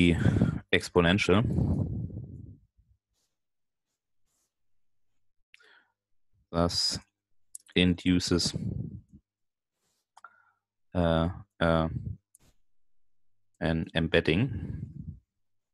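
A man speaks calmly in short phrases with pauses, heard over an online call.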